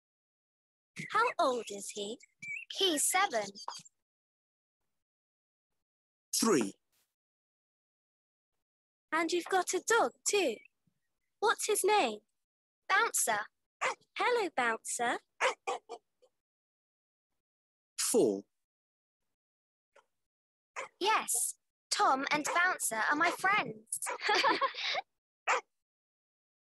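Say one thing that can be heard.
A woman speaks slowly and clearly, heard through an online call.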